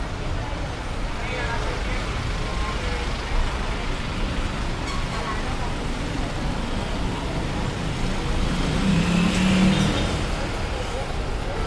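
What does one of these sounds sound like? People chatter faintly in passing.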